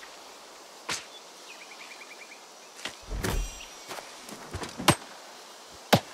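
A spear stabs into a boar with sharp thuds.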